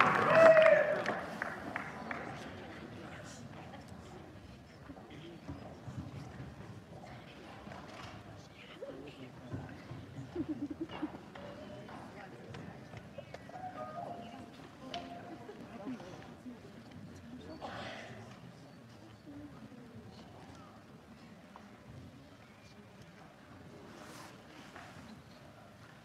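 An audience murmurs and shuffles quietly in a large hall.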